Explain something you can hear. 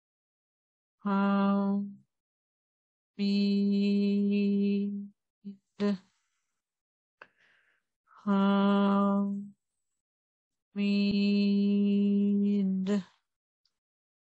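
An older woman chants long, steady sung tones close to a microphone, with pauses between them.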